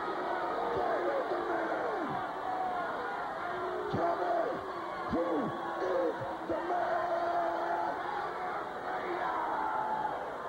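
A man roars and shouts loudly into a microphone.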